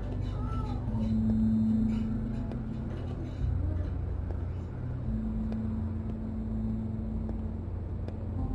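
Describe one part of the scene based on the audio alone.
Footsteps walk slowly along a wooden floor.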